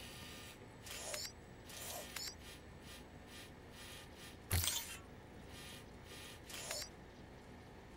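Soft electronic clicks and chimes sound now and then.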